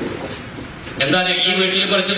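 A man speaks into a microphone through loudspeakers in an echoing hall.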